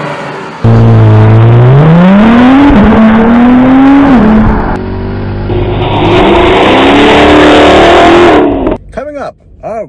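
A sports car engine revs loudly and rises in pitch.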